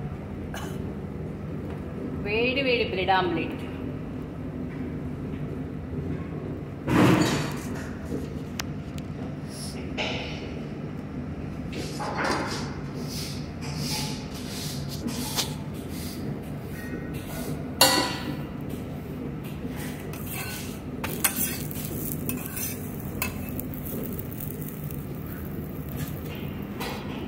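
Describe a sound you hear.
Eggs sizzle softly in a hot pan.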